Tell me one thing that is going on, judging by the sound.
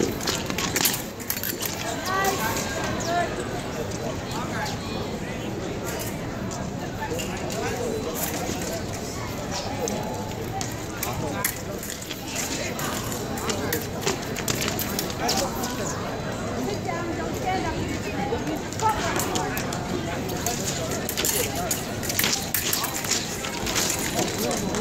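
Blades click against each other.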